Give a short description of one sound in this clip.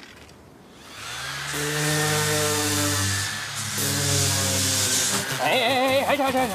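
An electric sander whirs loudly.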